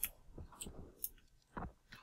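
A fire crackles in a burning barrel.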